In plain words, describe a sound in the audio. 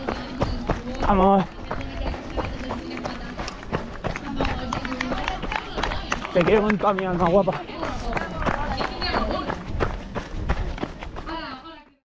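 A crowd of men and women shouts and cheers nearby outdoors.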